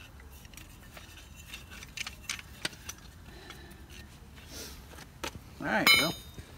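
Metal tool parts clank and click as a jack is handled.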